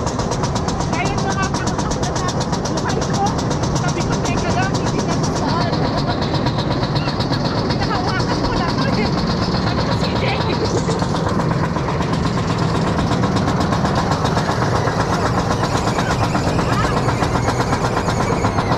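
A roller coaster car clatters and rattles steadily along its track.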